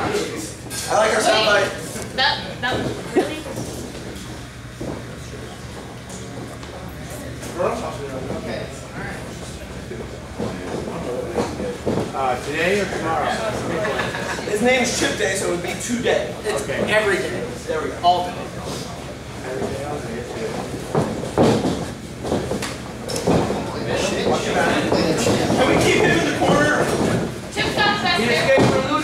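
A crowd of men and women cheers and shouts in an echoing hall.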